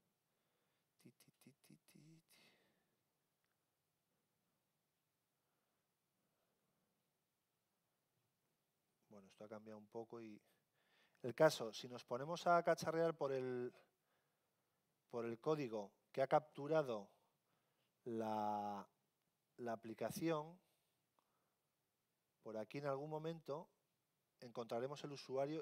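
A man speaks calmly through a microphone, pausing often.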